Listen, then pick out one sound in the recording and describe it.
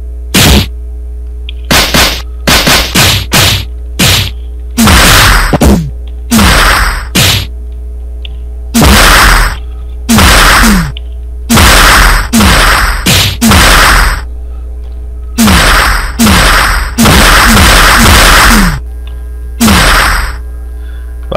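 Game punches and pipe swings land with loud, punchy hit sounds, over and over.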